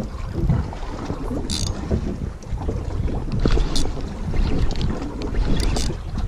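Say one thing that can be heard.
Wind buffets outdoors over open water.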